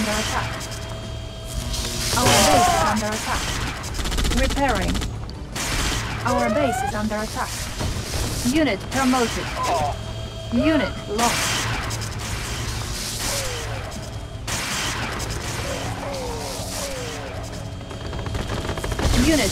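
Electric weapons crackle and zap in a battle.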